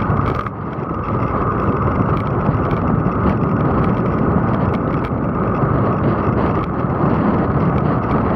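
Bicycle tyres hum on smooth tarmac.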